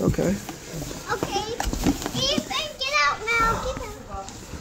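A young boy talks excitedly close by.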